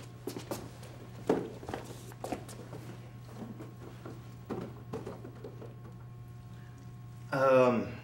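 Cardboard boxes thud onto a wooden bench.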